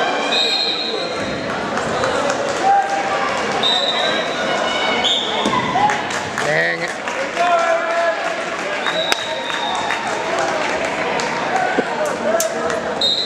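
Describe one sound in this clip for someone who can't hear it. A crowd shouts and cheers throughout in a large echoing hall.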